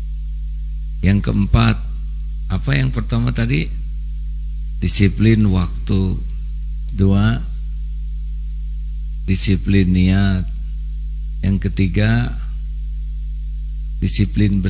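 A middle-aged man speaks calmly into a microphone in short phrases with pauses.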